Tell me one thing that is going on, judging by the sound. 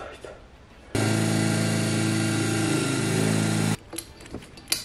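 An electric drill whirs steadily.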